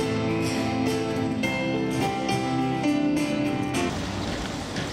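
An elderly man strums an acoustic guitar close by.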